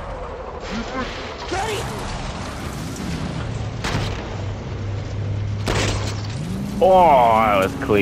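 A young woman shouts urgently.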